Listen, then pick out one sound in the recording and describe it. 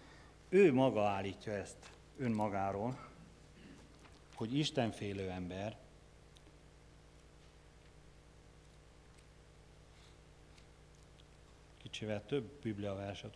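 A man speaks calmly through a microphone, in bursts with long pauses.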